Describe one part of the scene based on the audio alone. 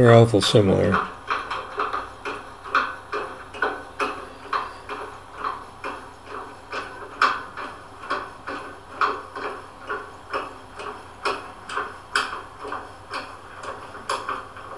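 A ratchet wrench clicks rapidly in steady strokes.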